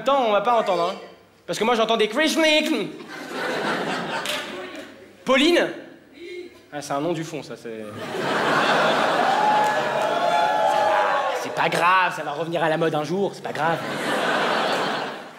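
A young man speaks animatedly into a microphone in a large hall.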